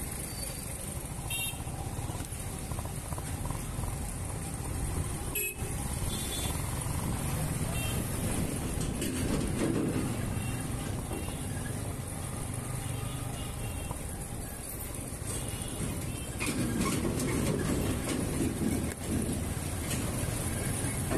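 A motorcycle engine runs low as the bike rolls slowly through traffic.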